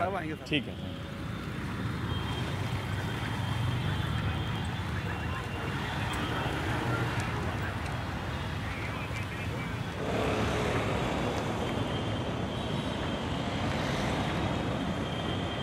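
Road traffic rumbles steadily nearby.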